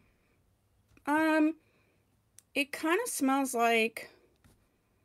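A woman speaks in short, lilting bursts close to the microphone.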